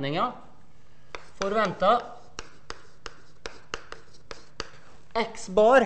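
Chalk taps and scrapes on a blackboard.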